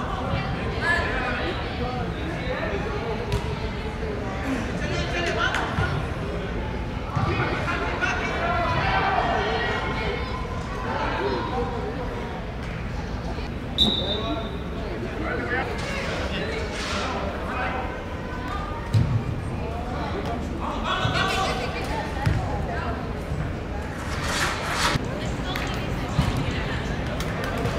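Young players shout and call out across a large echoing indoor hall.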